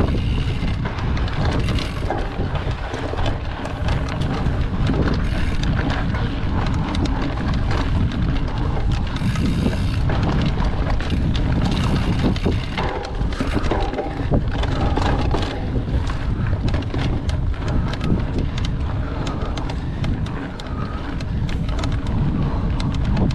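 Bicycle tyres roll and crunch over a dry dirt trail.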